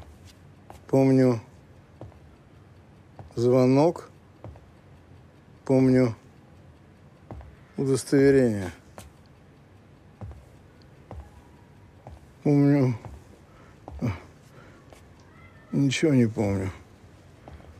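An elderly man speaks in a tired, strained voice close by.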